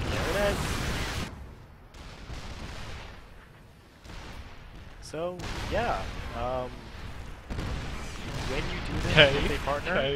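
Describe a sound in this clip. Gunfire and blasts of a video game battle crackle.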